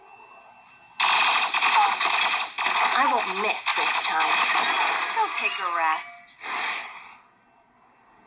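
Gunfire and blasts crackle loudly from a small phone speaker.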